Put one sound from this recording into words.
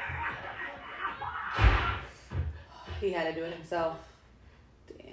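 A young woman gasps and speaks with excitement close by.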